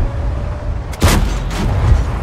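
A tank cannon fires with a sharp, loud boom.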